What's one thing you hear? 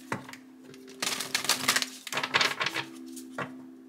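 Playing cards shuffle with a quick papery riffle.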